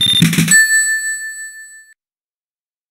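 A video game's bonus tally ends with a bright chime that rings out and fades.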